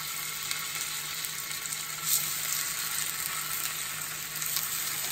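Oil sizzles and crackles steadily in a hot frying pan.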